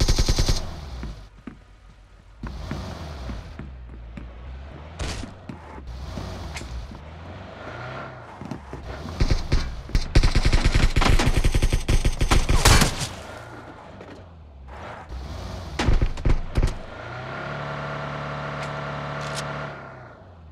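A car engine hums and revs as the car drives over rough ground.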